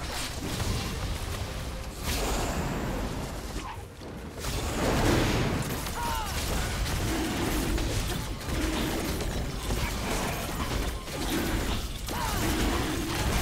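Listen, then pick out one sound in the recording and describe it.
Game sound effects whoosh and crackle in a busy fight.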